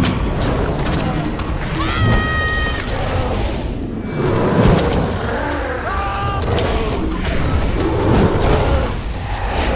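Fire crackles and roars.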